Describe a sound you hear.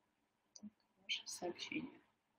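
A young woman speaks briefly and calmly through an online call.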